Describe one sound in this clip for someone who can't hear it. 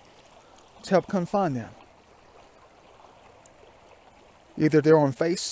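Shallow water trickles gently over stones.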